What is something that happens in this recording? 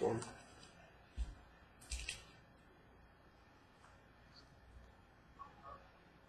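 Playing cards tap and rustle as hands handle them.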